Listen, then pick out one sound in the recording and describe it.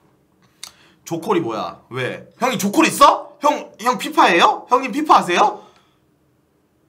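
A young man speaks emotionally close to a microphone.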